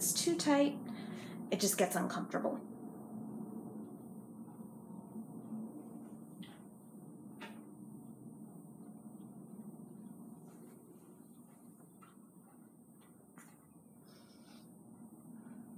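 Fabric rustles as a scarf is handled.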